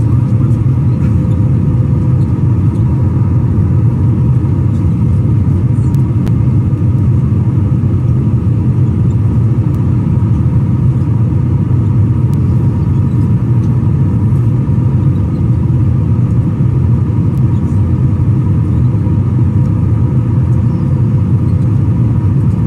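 A jet engine roars steadily in flight.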